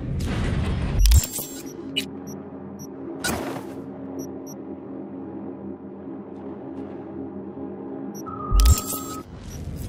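A deep whoosh sounds as a menu opens and closes.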